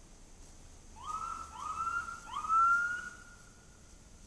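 A siren gives three short rising whoops close by.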